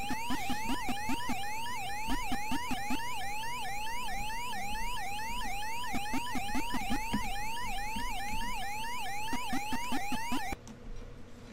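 Short electronic chomping blips sound in quick bursts.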